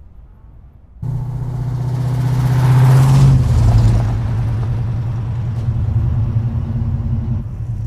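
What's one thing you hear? A van engine rumbles as the van drives off.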